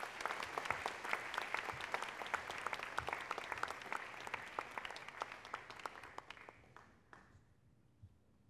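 An audience applauds loudly in a large hall, then the applause fades.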